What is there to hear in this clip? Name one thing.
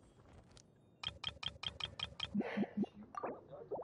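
Rapid ticking clicks count up quickly.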